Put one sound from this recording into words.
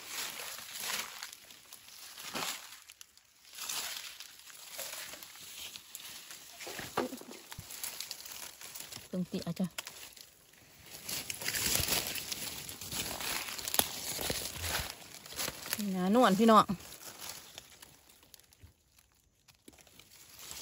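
A knife scrapes and cuts a mushroom stem.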